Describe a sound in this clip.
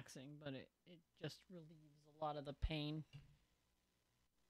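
A young woman speaks with animation through a microphone, then falls silent.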